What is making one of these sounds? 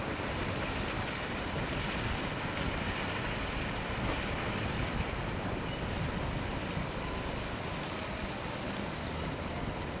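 Water splashes at a boat's bow.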